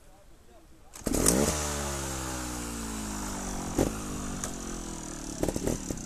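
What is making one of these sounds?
A trials motorcycle engine revs and pulls away.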